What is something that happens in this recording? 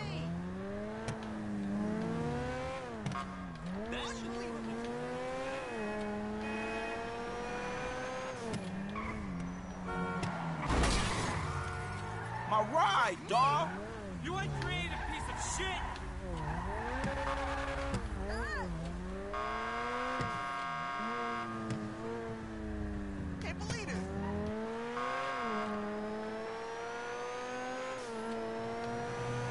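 A car engine revs up and down as gears shift.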